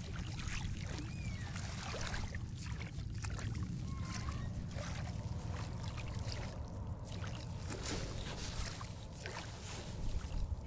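Water churns and bubbles as a swimmer moves underwater.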